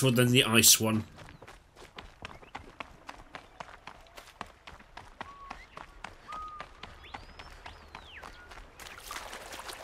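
Footsteps patter quickly on dirt and rock.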